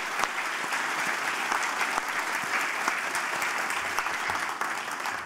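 A large audience applauds in a big echoing hall.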